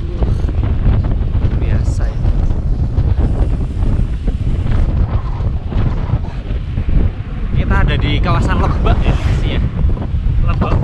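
Wind buffets a microphone with a loud, steady rumble.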